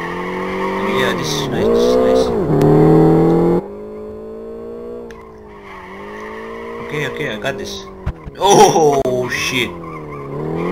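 Tyres squeal on tarmac in short bursts.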